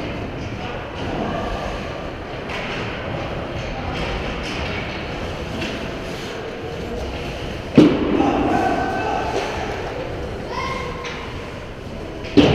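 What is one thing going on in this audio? Skate blades scrape across the ice in a large echoing rink.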